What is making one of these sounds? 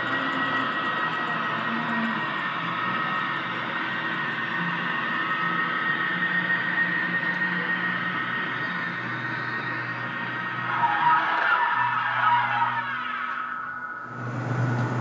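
A small model train motor hums steadily as the train rolls along its tracks.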